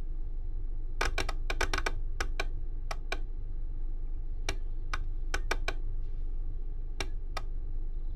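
Switches click sharply several times.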